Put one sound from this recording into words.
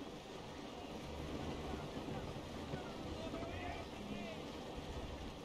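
Waves wash and splash against a wooden ship's hull.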